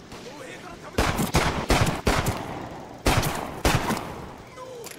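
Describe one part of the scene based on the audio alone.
A revolver fires several loud shots.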